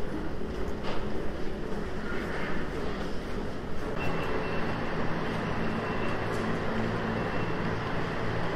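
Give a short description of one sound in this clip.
Footsteps of a crowd shuffle and tap on a hard floor.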